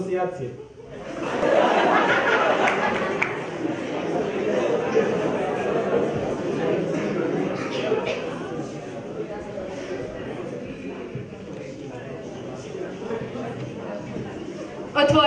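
A crowd of teenagers cheers and chatters loudly in a room.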